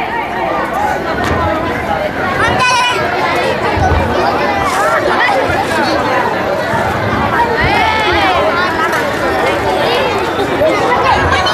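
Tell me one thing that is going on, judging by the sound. Men speak with animation through microphones over loudspeakers.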